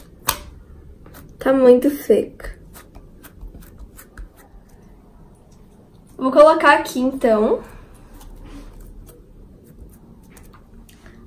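Soft slime squishes and clicks under pressing fingers.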